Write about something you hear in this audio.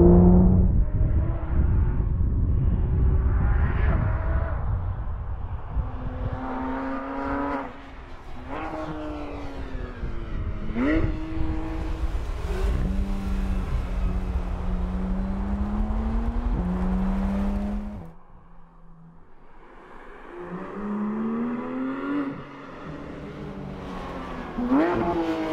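A sports car engine revs hard and shifts gears as the car speeds along a winding road.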